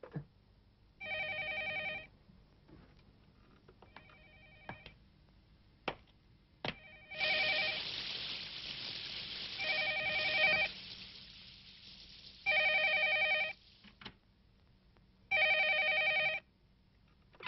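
A telephone rings repeatedly.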